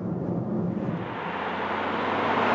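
A car drives past on the road outdoors.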